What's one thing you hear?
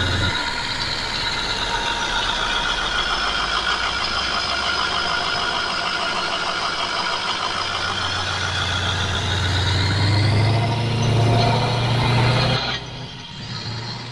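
A car engine hums steadily as a vehicle drives along a road.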